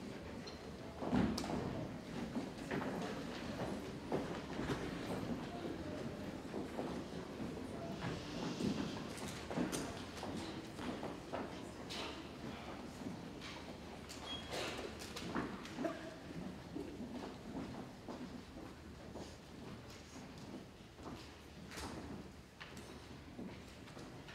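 Footsteps and shuffling knock on a wooden stage in a large room.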